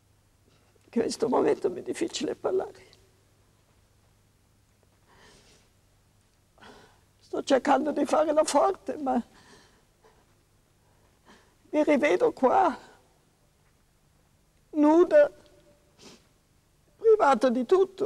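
An elderly woman speaks slowly and sadly, close by, in short bursts with pauses.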